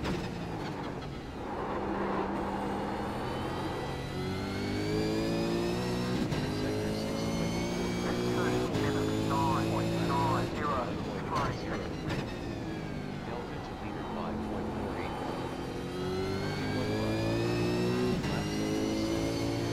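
A race car engine revs hard and rises in pitch through its gears.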